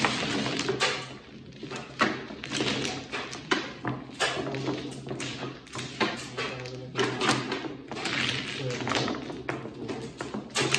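Plastic tiles click and knock as they are stacked into rows.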